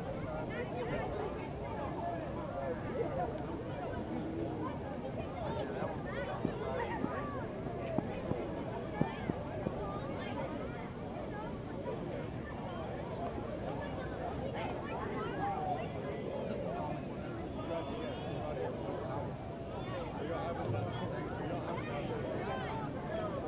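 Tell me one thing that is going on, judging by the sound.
A large crowd of men, women and children chatters and cheers outdoors.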